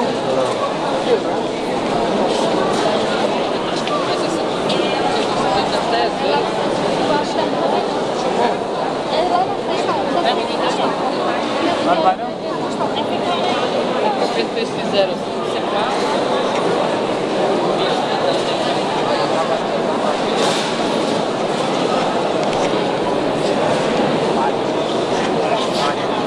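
A large crowd of men and women talks all at once, echoing in a large hall.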